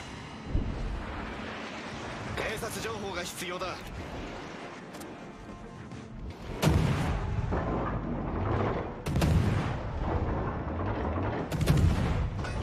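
Heavy ship guns fire with loud, deep booms.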